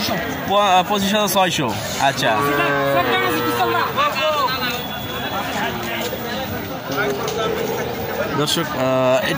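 Several men talk loudly and with animation outdoors.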